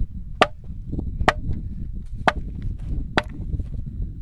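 A sledgehammer strikes rock with sharp, ringing clanks.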